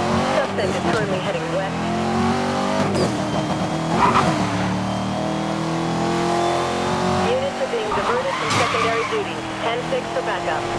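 A sports car engine roars at high speed.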